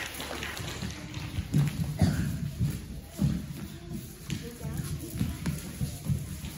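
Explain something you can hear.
Children's feet thud and patter across a wooden floor.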